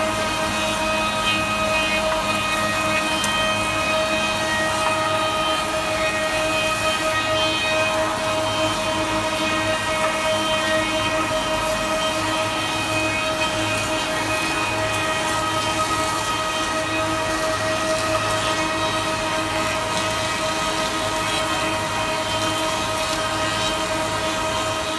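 Cutter blades whine as they plane wood.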